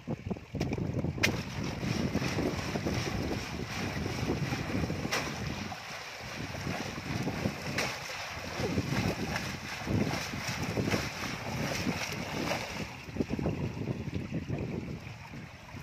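Water splashes as a basket is swirled and rinsed in a pond.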